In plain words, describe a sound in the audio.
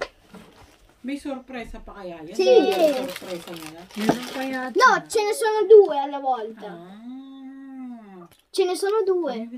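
A young girl talks and laughs nearby.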